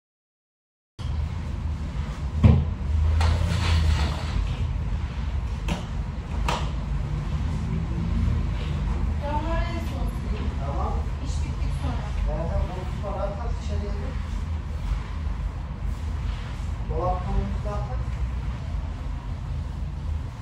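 A broom sweeps across a hard floor.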